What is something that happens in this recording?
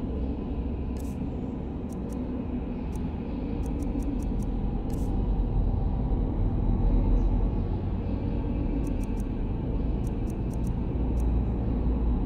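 Soft game menu clicks tick as a list is scrolled.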